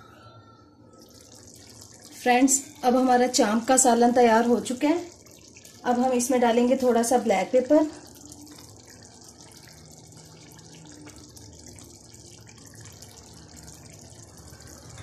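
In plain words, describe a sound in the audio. Sauce simmers and sizzles gently in a pan.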